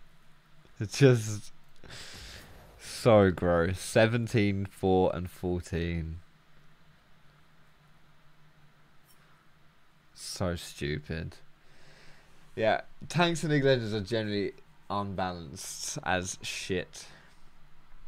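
A young man talks casually and close to a microphone, with pauses.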